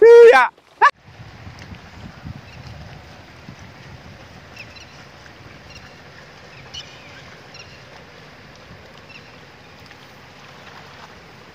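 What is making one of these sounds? Water splashes softly as people plant in a flooded field.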